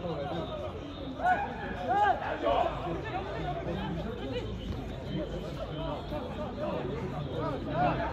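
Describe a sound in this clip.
Football players shout to each other across an open pitch.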